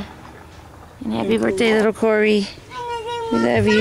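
A baby cries close by.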